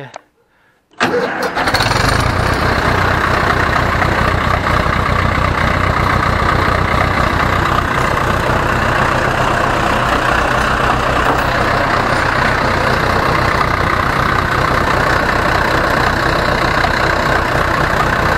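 A tractor engine rumbles loudly and steadily.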